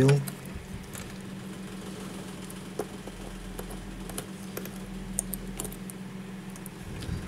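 Small tools tap and click against the parts of a phone.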